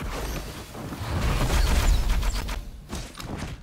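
A fiery spell bursts with a deep roaring whoosh.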